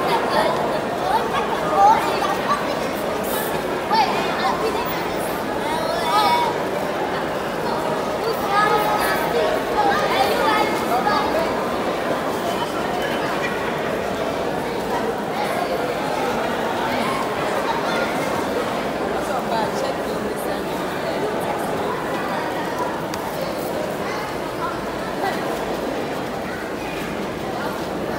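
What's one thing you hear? Children play brass horns together in a lively, blaring band.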